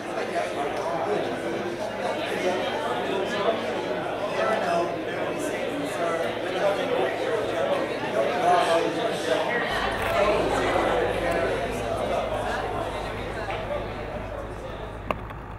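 An accordion plays.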